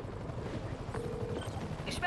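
A helicopter's rotor whirs overhead.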